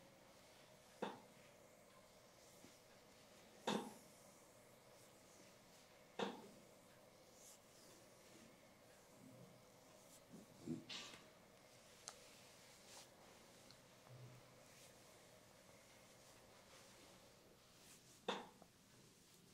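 Hands slap and tap sharply on skin now and then.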